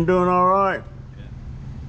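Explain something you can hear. A man speaks loudly, very close by.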